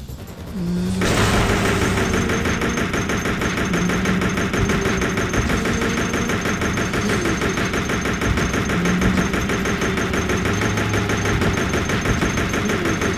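A handgun fires rapid shots.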